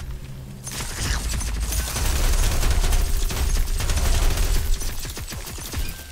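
A loud icy blast rumbles and roars.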